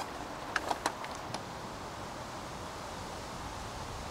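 A car door clicks and thumps shut.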